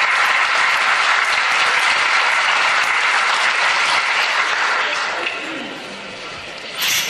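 An audience applauds loudly in a large hall, and the applause then fades away.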